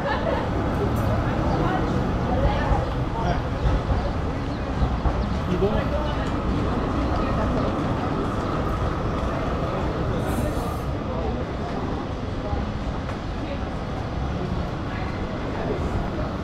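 A tram rumbles along the street.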